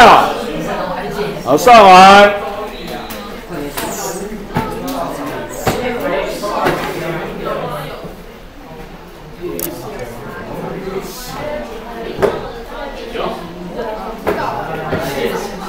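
Several young people talk and chatter nearby in a room.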